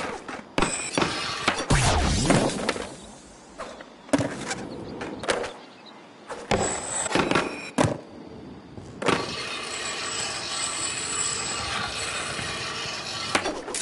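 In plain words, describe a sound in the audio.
A skateboard grinds along a metal rail.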